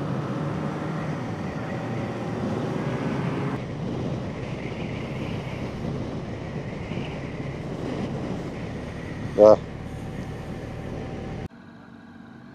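Wind rushes loudly past.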